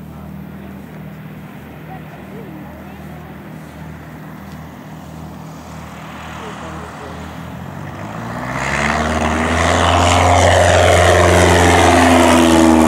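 A small propeller plane's engine drones as it approaches and grows much louder overhead.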